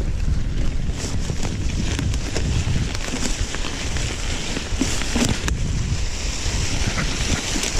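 Bike tyres crunch through dry fallen leaves.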